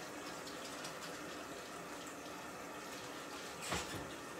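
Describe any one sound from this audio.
Water runs into a sink.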